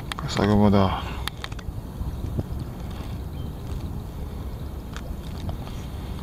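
Small waves slosh against a kayak hull out on open water.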